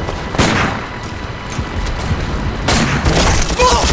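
Rifles fire in loud sharp shots.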